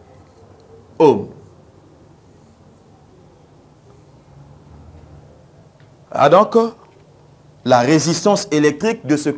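A man speaks clearly and calmly.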